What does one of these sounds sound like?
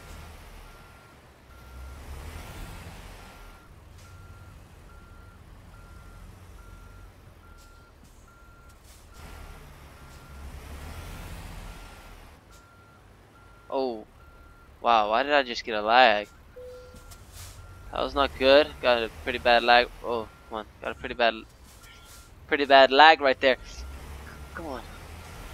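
A truck engine rumbles low.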